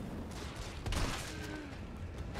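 A zombie groans hoarsely nearby.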